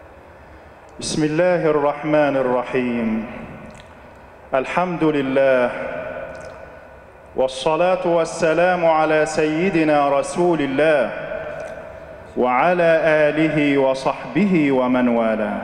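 A man speaks steadily into a microphone, echoing through a large hall.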